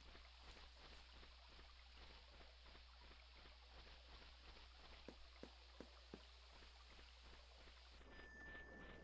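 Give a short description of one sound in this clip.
Footsteps fall on a dirt path.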